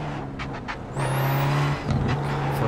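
Tyres squeal briefly as a racing car brakes into a corner.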